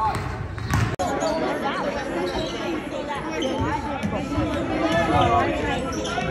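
Sneakers squeak on a wooden floor in a large echoing gym.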